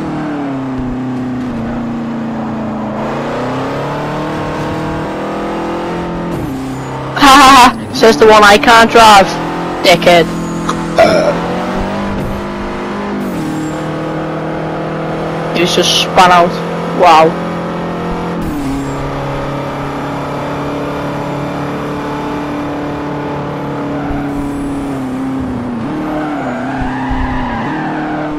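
A racing car engine drones steadily, rising and falling in pitch as it shifts gears.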